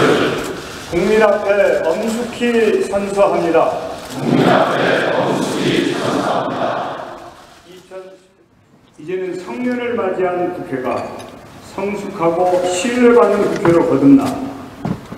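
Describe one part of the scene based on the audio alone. A middle-aged man speaks formally through a microphone in a large hall.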